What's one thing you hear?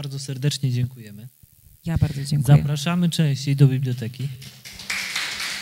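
A middle-aged man talks calmly through a microphone.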